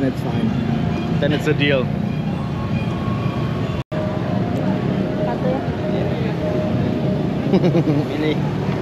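A busy street crowd murmurs outdoors.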